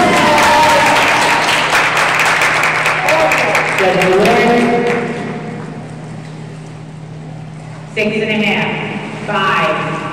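A crowd of young people cheers and shouts in an echoing hall.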